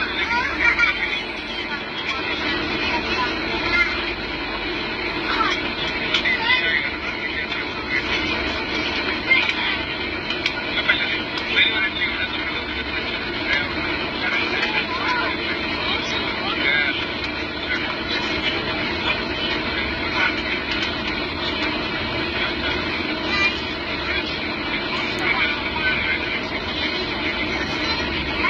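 A jet engine roars steadily inside an aircraft cabin.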